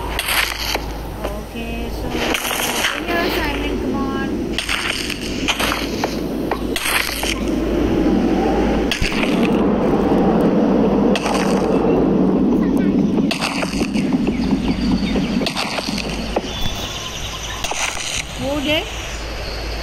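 Blocks of earth and stone crunch as they are broken one after another.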